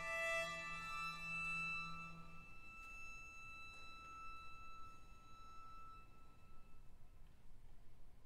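A string ensemble plays a final chord that rings out in a large echoing hall.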